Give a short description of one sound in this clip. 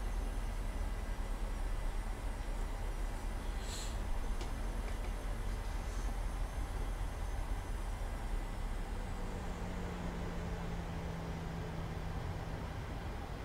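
Jet engines hum and rumble steadily while an airliner taxis.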